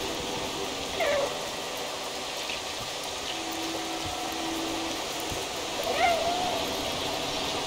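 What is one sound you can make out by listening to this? A cat meows twice, a few seconds apart.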